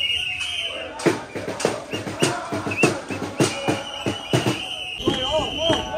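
Hands clap in rhythm.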